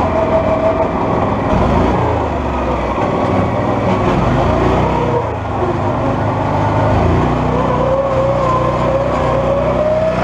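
An off-road vehicle engine runs and revs unevenly.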